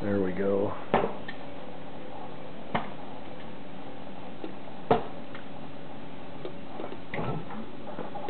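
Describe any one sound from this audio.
Metal latches click and clank as a lid is fastened.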